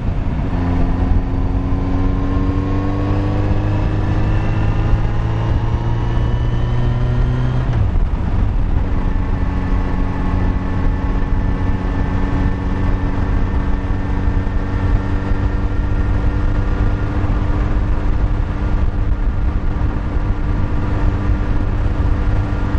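A motorcycle engine hums steadily, slowly rising in pitch and then settling after a gear change.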